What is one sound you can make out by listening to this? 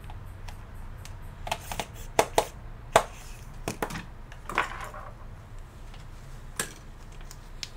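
A plastic panel clicks and snaps as it is pried loose.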